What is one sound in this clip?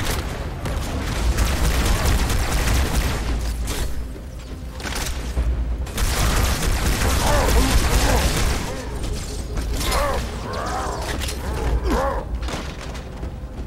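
Rapid energy weapon fire crackles and booms.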